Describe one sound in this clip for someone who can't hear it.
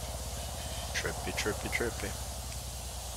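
A man speaks briefly and quietly into a nearby microphone.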